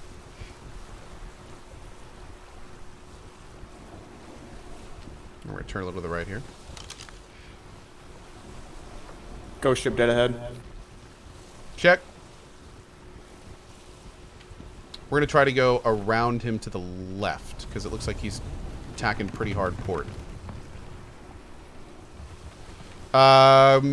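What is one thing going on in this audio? Waves splash and roll against a sailing ship.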